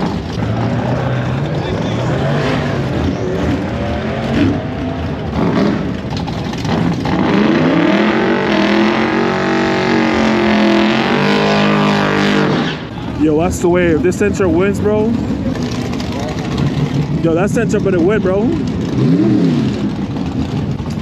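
Race car engines rumble and rev loudly.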